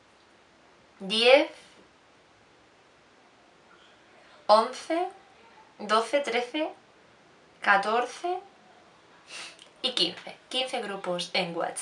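A young woman speaks close to a microphone, calmly and in short bursts.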